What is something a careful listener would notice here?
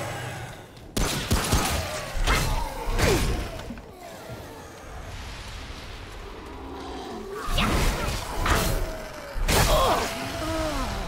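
Heavy blows thud and crunch.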